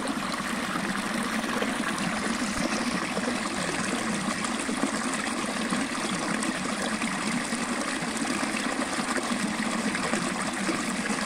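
Water splashes and gurgles steadily over rocks close by.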